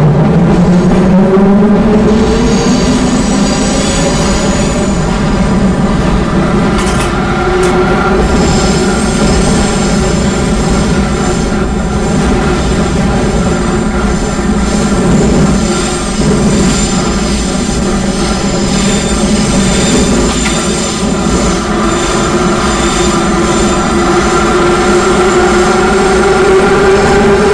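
A subway train rumbles steadily through a tunnel.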